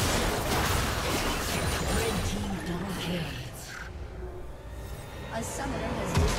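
Video game spells and weapon hits crash and whoosh rapidly.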